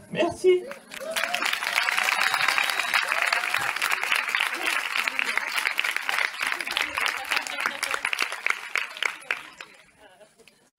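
A crowd applauds and cheers outdoors.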